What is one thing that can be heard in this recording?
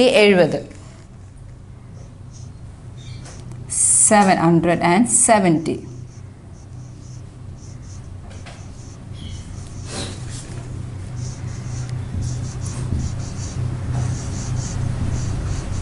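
A marker squeaks across a whiteboard.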